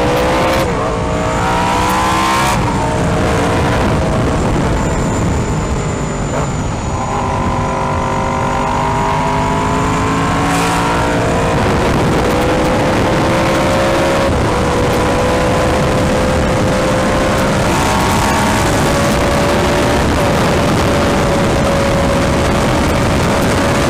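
A motorcycle engine revs up and down through the gears.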